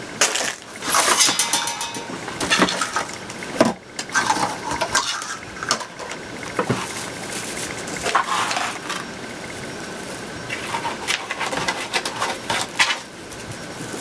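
Plastic mesh rustles and crinkles as it is handled.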